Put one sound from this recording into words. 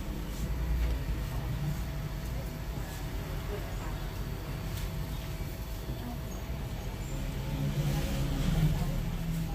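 A straight razor scrapes softly over stubble.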